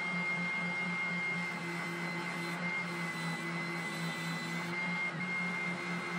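A spindle sander hums steadily with a high whine.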